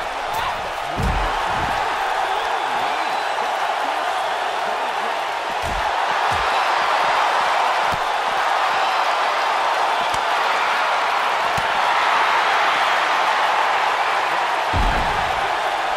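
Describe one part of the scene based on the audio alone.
Heavy thuds land as wrestlers slam each other.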